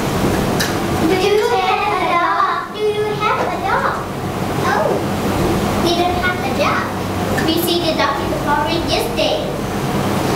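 Another young girl answers cheerfully, close by.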